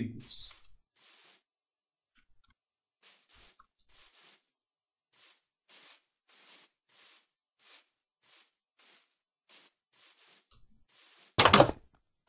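Footsteps crunch on grass.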